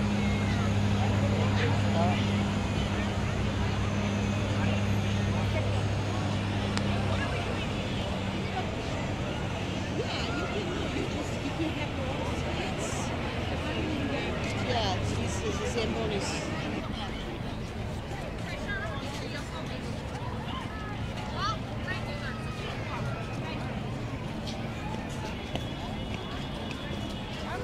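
A crowd of people chatter and murmur nearby outdoors.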